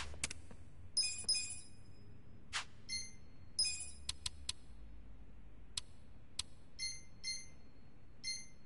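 Short electronic menu chimes blip one after another.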